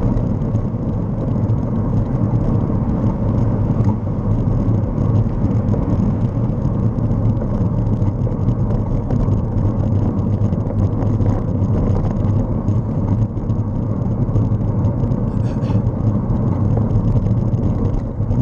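Wind rushes steadily over a microphone.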